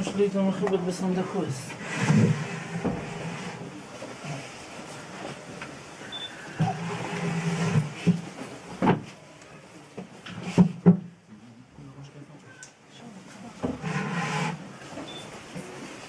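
Men talk and murmur nearby in a room.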